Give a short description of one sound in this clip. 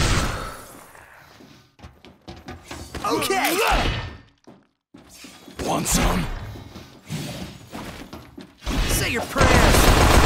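Weapons swish and clang in a fight.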